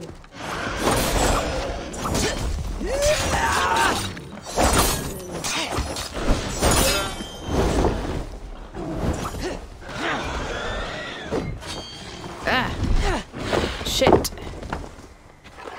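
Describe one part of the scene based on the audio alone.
Heavy hooves thud on the ground.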